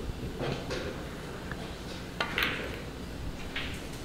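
A cue strikes a ball with a sharp click.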